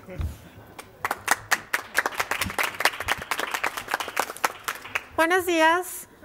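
A crowd applauds and cheers.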